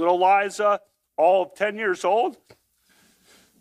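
A young man speaks quickly and emphatically into a close microphone.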